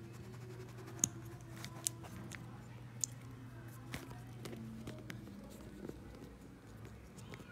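Small plastic parts click and tap close by.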